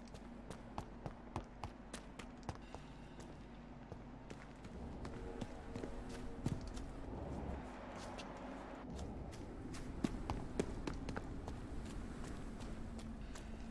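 Quick footsteps run over gravel and stone.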